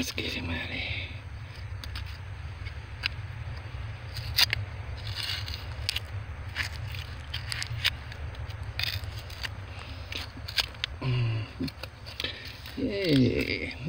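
Hands rustle and scrape through loose, dry rubble.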